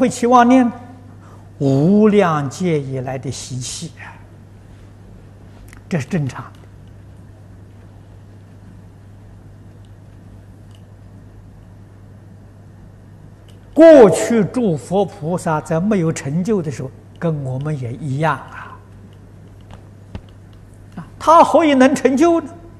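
An elderly man speaks calmly into a microphone, in short phrases with long pauses.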